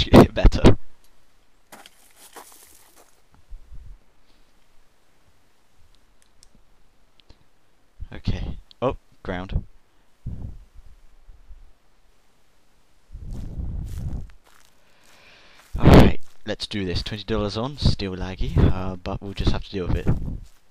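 A young man talks with animation into a headset microphone, close by.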